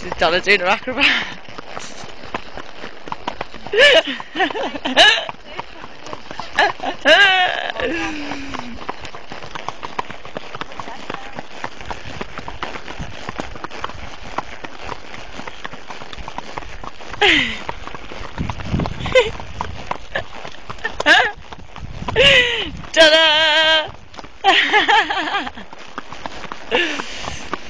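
A horse's hooves clop on a paved road at a walk.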